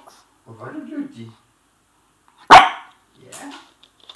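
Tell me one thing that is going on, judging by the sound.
A puppy's paws patter softly on a wooden floor.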